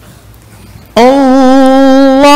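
A man chants loudly and melodiously through a loudspeaker.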